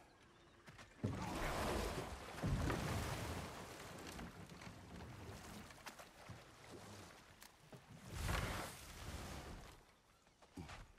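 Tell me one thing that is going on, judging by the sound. Water splashes as a wooden boat is rowed.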